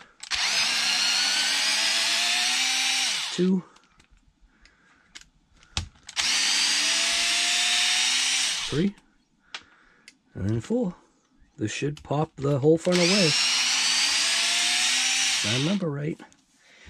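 A cordless power screwdriver whirs in short bursts, winding down at the end of each.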